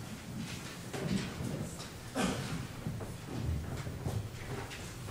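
A man speaks calmly in a small echoing room.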